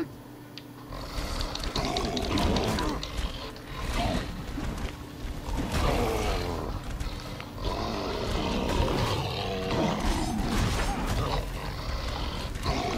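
Heavy blows thud and clash in a fight.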